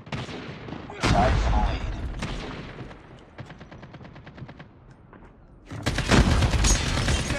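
Gunfire rings out in rapid bursts.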